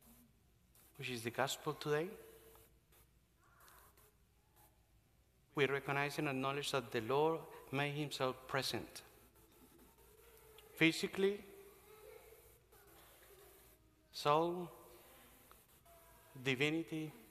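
A man preaches through a microphone in an echoing hall, speaking with pauses.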